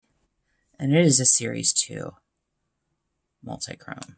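A small pan clicks into place in a palette.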